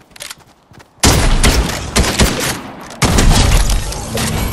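Shotgun blasts boom at close range.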